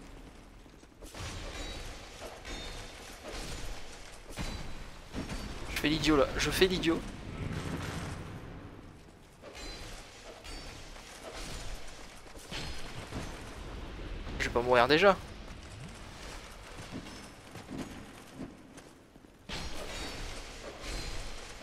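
Swords clash and strike armour in a fight.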